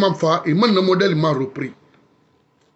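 A man speaks forcefully and close to the microphone.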